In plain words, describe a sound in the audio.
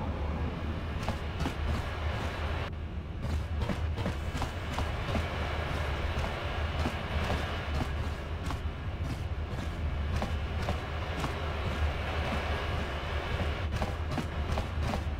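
Footsteps tap on a hard metal floor.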